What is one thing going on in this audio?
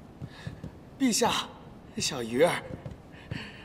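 A middle-aged man speaks loudly and with animation, close by.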